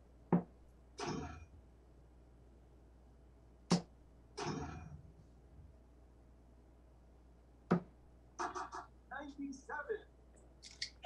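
An electronic dartboard chimes and beeps after each hit.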